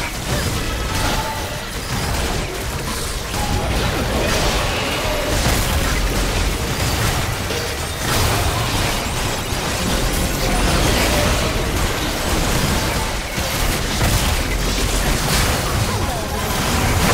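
Magic blasts and spell effects crash and whoosh in quick succession.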